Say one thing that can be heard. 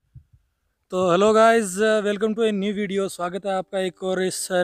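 A young man speaks calmly outdoors.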